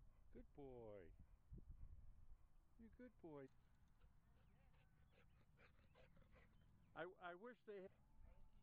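A dog whines and yelps in high, drawn-out cries.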